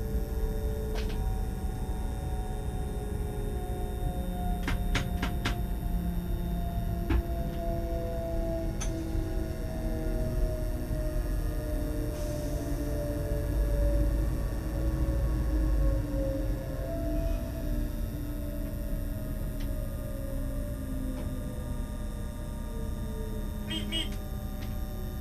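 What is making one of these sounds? Train wheels click over rail joints now and then.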